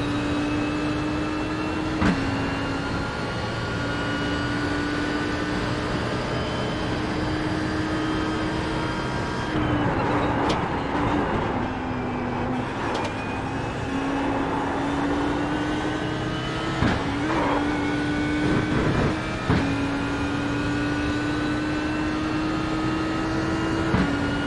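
A racing car's engine roars loudly, climbing in pitch as it speeds up.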